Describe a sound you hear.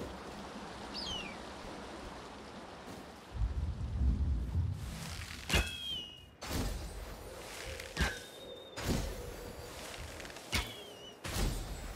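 A large bird screeches several times.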